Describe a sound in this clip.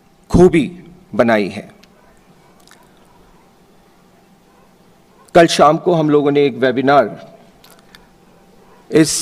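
A middle-aged man speaks slowly and formally into a microphone over a loudspeaker, with pauses between phrases.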